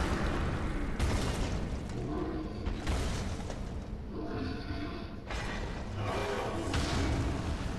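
Heavy armour clanks as a huge beast moves.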